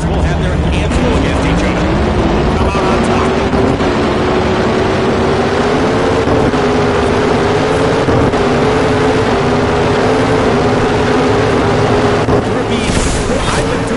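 A racing engine roars loudly as it accelerates hard.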